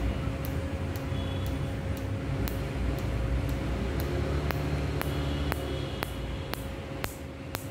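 A laser device snaps in quick, steady clicks against skin.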